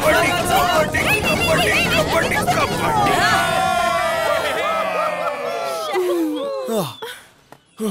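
A crowd of young people cheers and shouts loudly outdoors.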